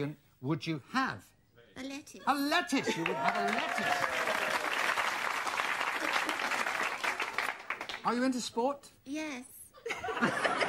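A woman speaks cheerfully.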